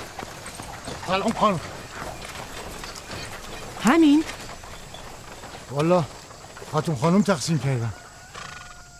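A middle-aged man speaks with agitation nearby.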